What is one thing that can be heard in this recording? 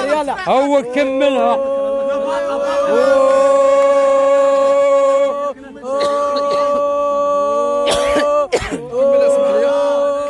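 Men chant and sing loudly, holding long notes.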